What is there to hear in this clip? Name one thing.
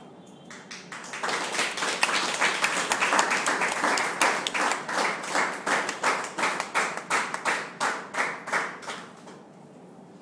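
An audience claps loudly for several seconds.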